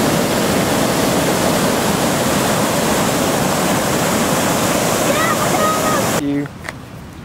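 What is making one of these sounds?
Water roars loudly as it pours over a dam.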